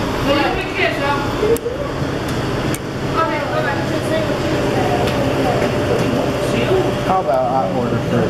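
Several young people talk over one another close by.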